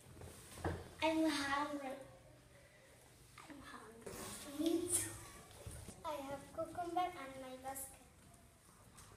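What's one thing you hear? A young girl speaks with animation close by.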